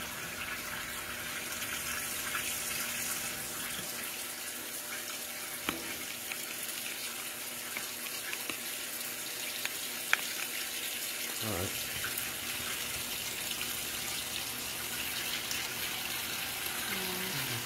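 A washing machine drum whirs and rumbles steadily.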